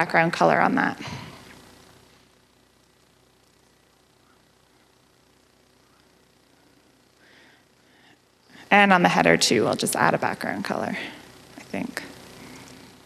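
A young woman speaks calmly into a microphone, heard through a loudspeaker.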